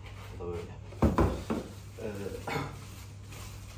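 Stiff foam packaging squeaks and knocks as it is handled.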